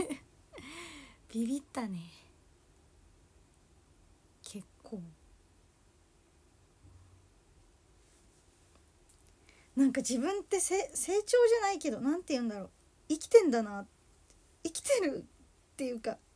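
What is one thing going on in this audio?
A young woman talks cheerfully and close up, with pauses.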